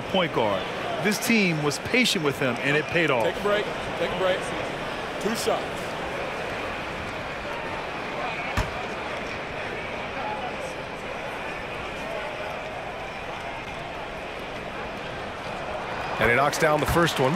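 A large crowd murmurs steadily in a big echoing arena.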